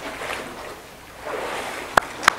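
Water splashes as a person is dipped under.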